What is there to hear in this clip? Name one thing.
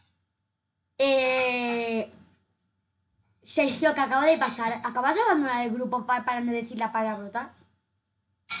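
A child speaks with animation close to a microphone.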